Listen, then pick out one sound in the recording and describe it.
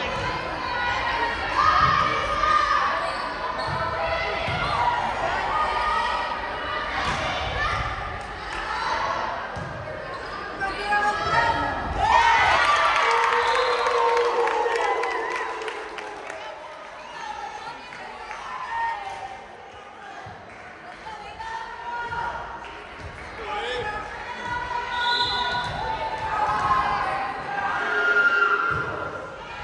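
A crowd of spectators cheers and calls out in a large echoing gym.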